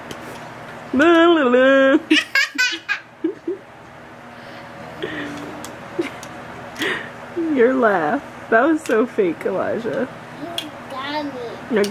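Plastic toy bricks click together.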